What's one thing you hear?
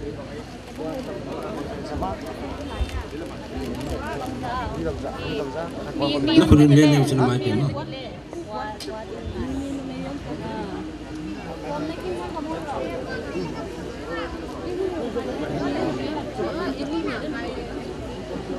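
A crowd murmurs and talks quietly nearby.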